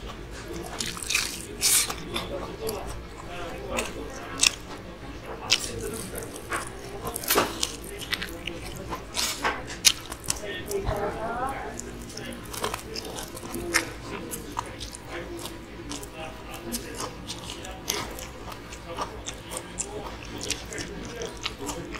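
A man chews noisily.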